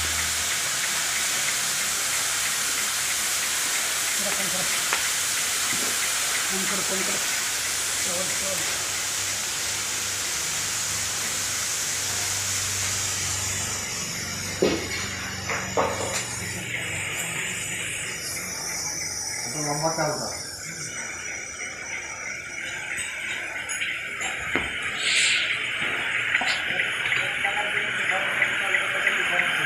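A machine roars steadily with a rushing hiss.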